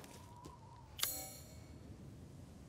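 A short chime rings out as a menu opens.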